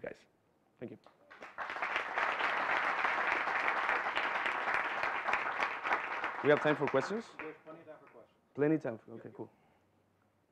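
A man speaks through a microphone to an audience.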